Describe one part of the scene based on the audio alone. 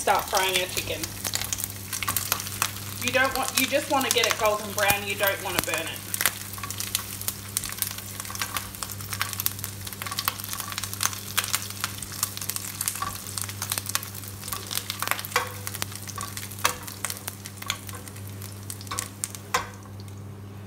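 Sausage slices sizzle and crackle in hot oil.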